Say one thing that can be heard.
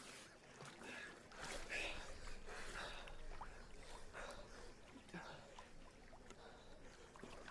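Water splashes and laps around swimmers.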